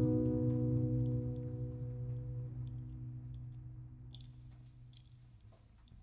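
Acoustic guitars ring out a final chord that slowly fades.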